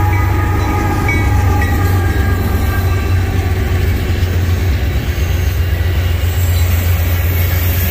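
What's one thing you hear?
Freight cars clatter and squeal on the rails as they roll past.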